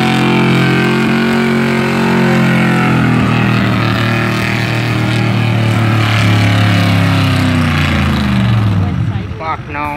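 A truck engine roars loudly at full throttle, its pitch slowly dropping before it cuts off.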